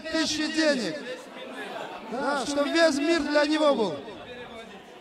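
A man speaks loudly and with animation into a microphone, heard through loudspeakers.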